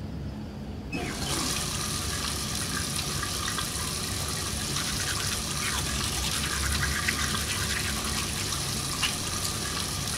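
A toothbrush scrubs teeth.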